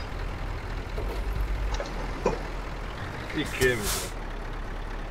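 A heavy truck engine idles with a steady low rumble.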